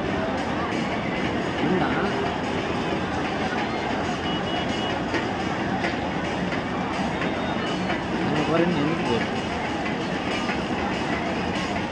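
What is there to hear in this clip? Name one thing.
A large crowd chatters loudly outdoors, with many voices mixing together.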